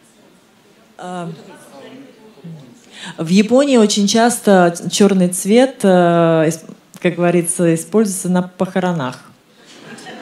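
A young woman speaks into a microphone, heard through a loudspeaker in a room.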